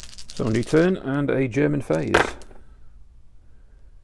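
Dice clatter into a tray.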